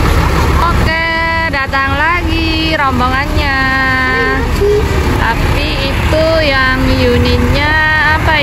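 A bus horn plays a loud, tuneful melody in short bursts.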